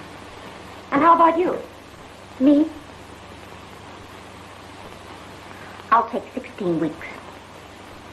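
A young woman speaks brightly and clearly, heard through an old, hissy recording.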